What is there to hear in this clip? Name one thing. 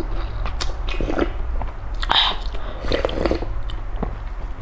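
A young woman slurps soup from a spoon.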